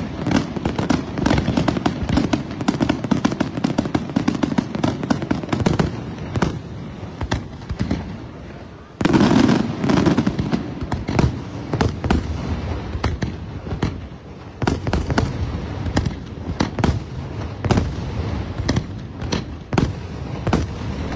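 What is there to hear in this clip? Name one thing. Fireworks burst with loud booms and sharp bangs.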